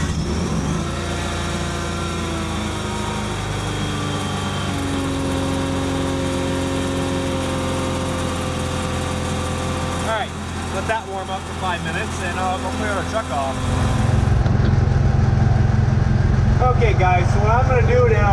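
A tractor engine idles steadily, then grows louder as the tractor drives off.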